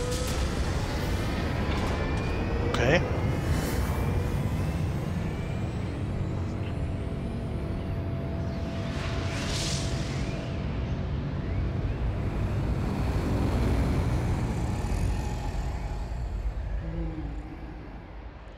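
A deep rushing roar surges steadily.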